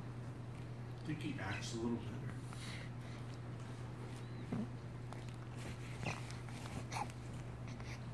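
A baby coos and babbles softly close by.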